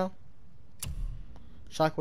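A game menu gives a soft click as a selection changes.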